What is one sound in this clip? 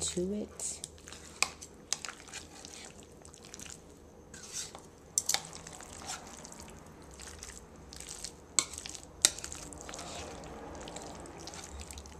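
A spoon scrapes and clicks against a plastic bowl while mixing food.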